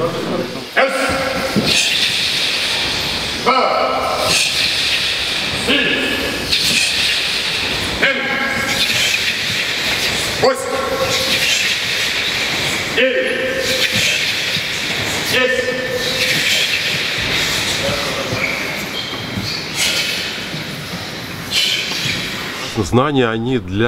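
A man shouts short commands at a steady pace in a large echoing hall.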